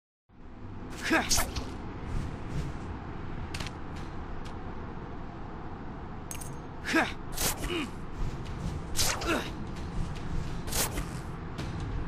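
Sharp whooshing swishes come again and again.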